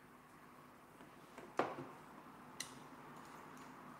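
A hard tool is set down on a counter with a sharp clack.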